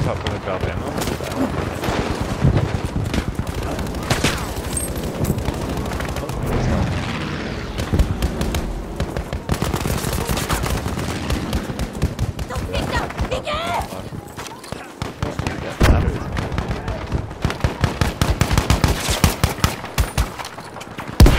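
Gunshots crack repeatedly nearby.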